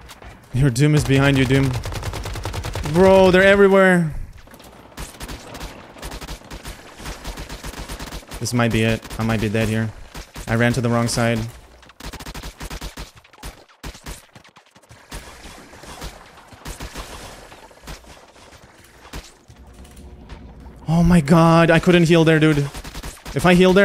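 A young man talks loudly and with animation into a microphone, close by.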